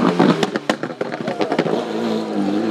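Backfires crackle sharply from a race car exhaust.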